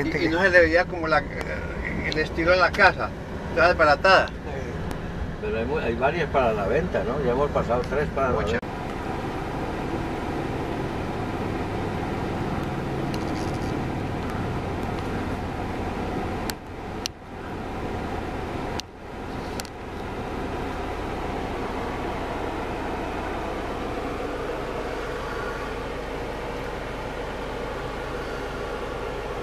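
A car drives along with a steady low rumble of tyres and engine.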